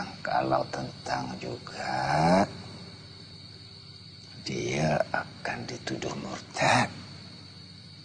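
A middle-aged man speaks in a low, serious voice close by.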